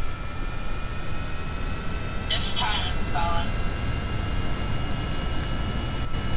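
A small propeller plane's engine hums steadily as it taxis.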